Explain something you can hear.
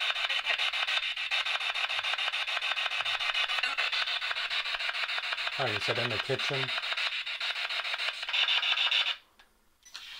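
A handheld radio device hisses with rapid, choppy static.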